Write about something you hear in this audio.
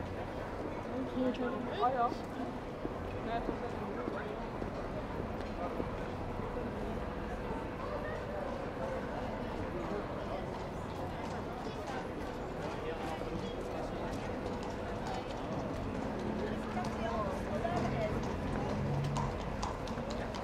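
A crowd murmurs in an open square outdoors.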